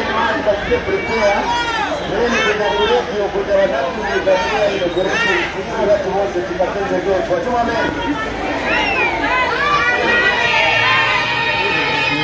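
Men nearby talk and murmur among themselves.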